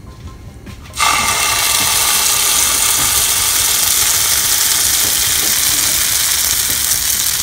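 Batter sizzles loudly as it pours into a hot pan.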